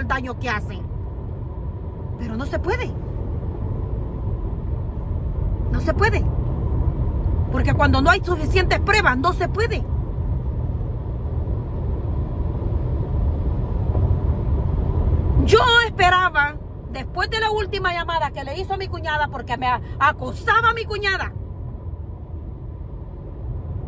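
A car's engine and tyres rumble low and steady from inside the car.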